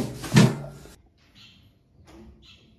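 Small birds chirp softly.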